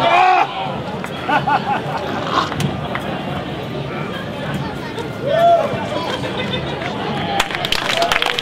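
A man speaks loudly outdoors, as in a staged performance.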